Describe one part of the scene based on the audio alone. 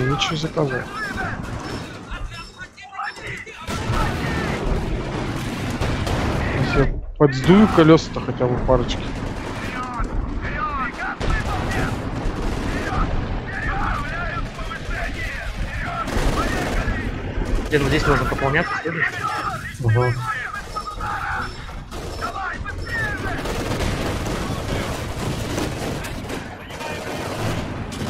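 Tank engines rumble and clank.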